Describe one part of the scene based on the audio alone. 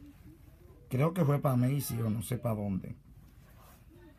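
A leather jacket rustles softly under a hand.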